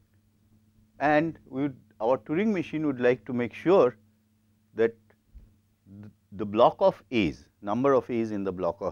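A man speaks calmly into a microphone, lecturing.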